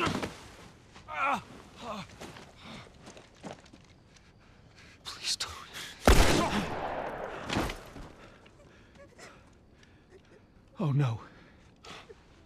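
A man pleads in fear, close by.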